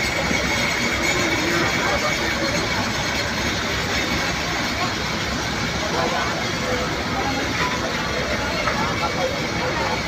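A fire truck engine rumbles steadily.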